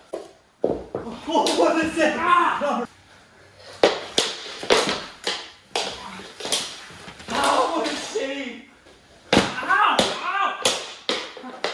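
Two men shout and cheer excitedly nearby.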